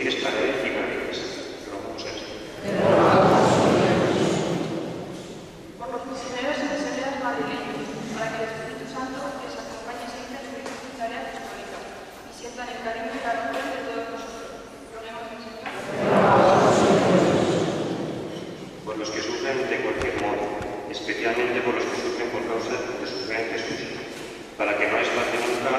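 A young man speaks into a microphone, his voice echoing in a large hall.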